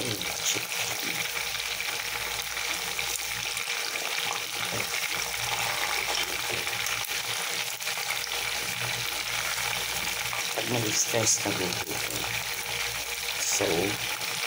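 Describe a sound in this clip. Metal tongs clink against a metal pot.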